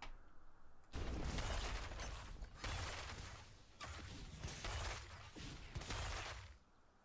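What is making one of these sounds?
Game battle sounds clash and burst.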